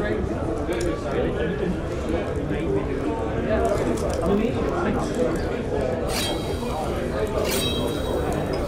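A crowd of men and women chatter and murmur all around, in a busy room.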